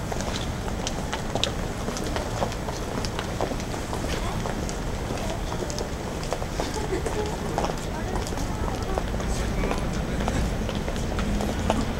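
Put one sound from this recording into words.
Footsteps of passers-by tap on a pavement nearby.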